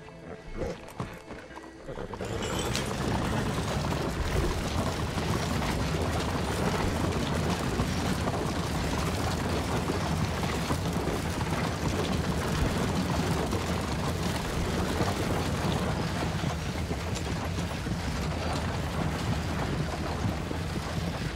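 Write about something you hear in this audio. Horse hooves clop steadily on stone.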